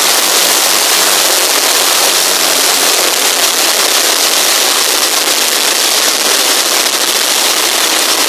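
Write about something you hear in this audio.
Propeller engines of a large aircraft roar loudly and steadily close by.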